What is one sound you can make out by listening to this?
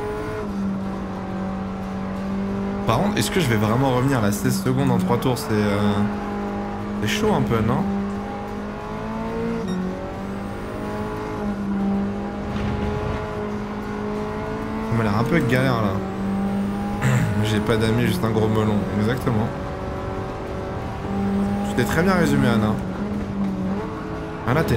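A racing car engine hums steadily and revs up and down through gear changes.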